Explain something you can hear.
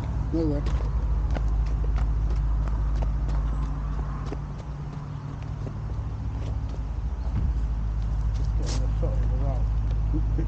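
Footsteps crunch softly on dry pine needles.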